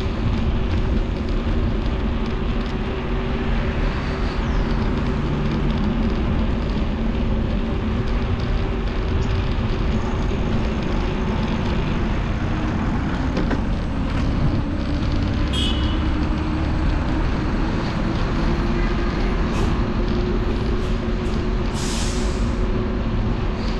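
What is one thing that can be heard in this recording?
Tyres hum on smooth pavement.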